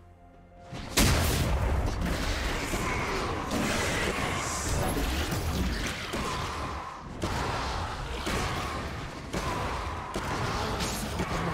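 Magical blasts and sword hits clash and crackle in a fast fight.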